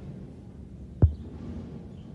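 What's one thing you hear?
A knife blade knocks sharply against a hard surface.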